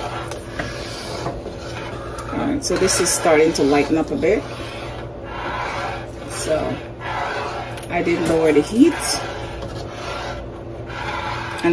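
A spoon stirs thick soup in a metal pot.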